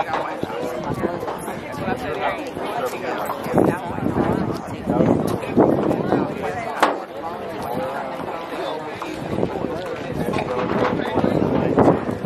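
A crowd of children and adults chatter nearby outdoors.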